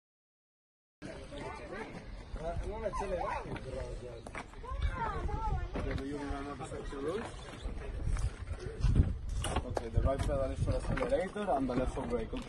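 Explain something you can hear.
Young men talk casually nearby.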